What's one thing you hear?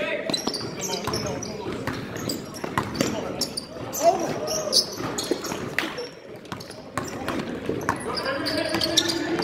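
A basketball bounces on a hardwood floor in an echoing gym.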